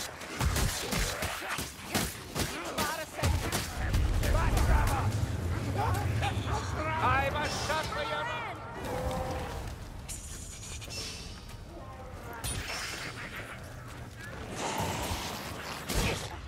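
Sword blades slash and hit flesh with wet impacts.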